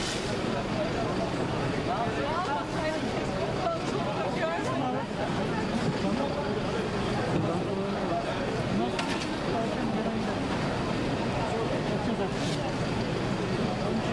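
A crowd of men and women talk and call out nearby outdoors.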